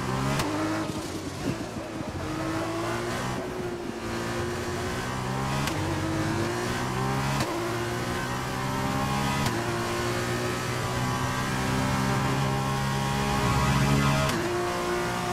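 Gearshifts click sharply.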